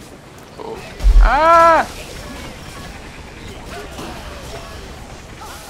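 Magic blasts burst and crackle in a fight.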